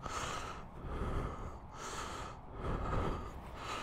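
A man talks close by through a helmet microphone.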